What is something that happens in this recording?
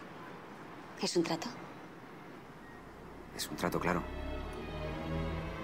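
A woman speaks softly, close by.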